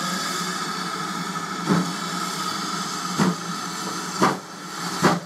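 A steam locomotive hisses steadily.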